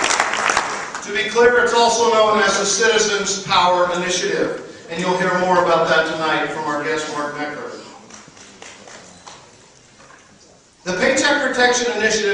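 A man speaks into a microphone over a loudspeaker in a large echoing hall.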